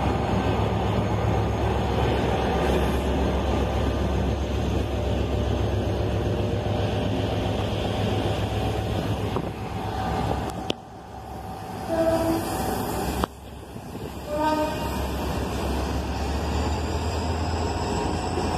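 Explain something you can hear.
A passenger train rumbles past close by, wheels clattering on the rails.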